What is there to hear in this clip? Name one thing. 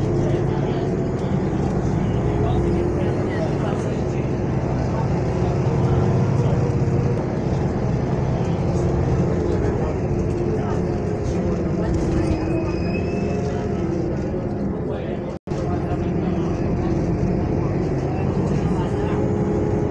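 A vehicle rumbles steadily as it drives along.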